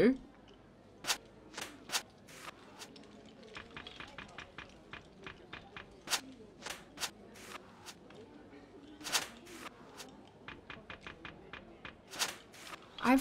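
Playing cards click softly as they are laid down.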